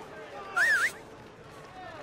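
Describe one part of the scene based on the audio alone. A young man whistles sharply.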